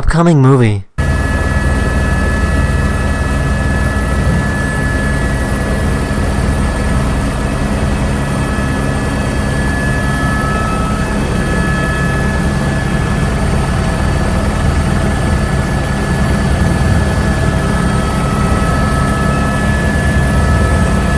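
A helicopter engine drones and whines steadily from close by.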